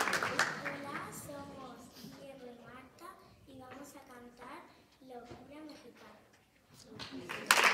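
A young girl speaks through a microphone in an echoing hall.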